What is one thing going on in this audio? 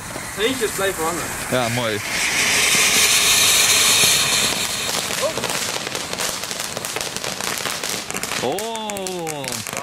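A firework fountain sprays with a loud, rushing hiss.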